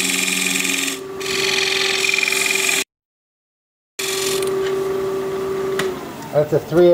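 A chisel scrapes and shaves wood on a spinning lathe with a steady whine.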